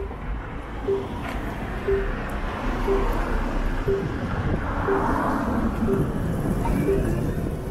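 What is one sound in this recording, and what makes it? Cars drive past nearby.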